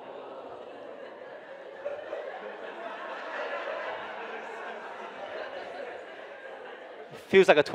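A young man laughs softly into a microphone.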